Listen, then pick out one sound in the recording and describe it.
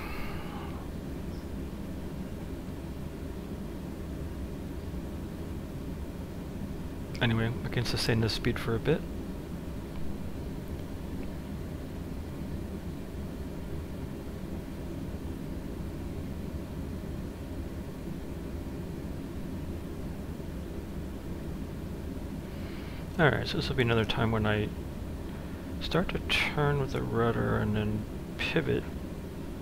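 A jet engine hums steadily at idle.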